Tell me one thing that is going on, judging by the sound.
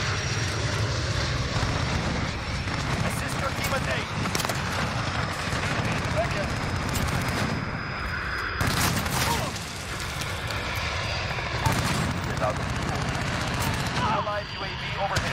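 Gunshots crack in quick bursts, echoing off walls.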